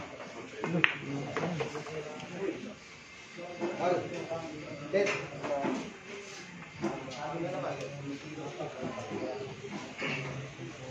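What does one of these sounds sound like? Men talk nearby in casual voices.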